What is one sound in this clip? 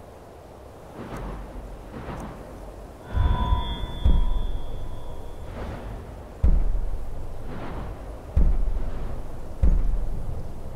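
Deep whooshing swells sound again and again, each with a soft shimmer.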